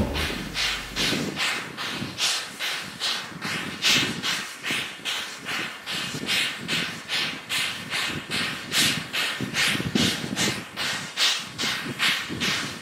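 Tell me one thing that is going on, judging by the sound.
A steam locomotive chuffs steadily and rhythmically.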